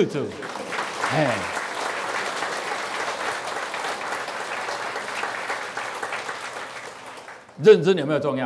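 A large audience applauds and claps.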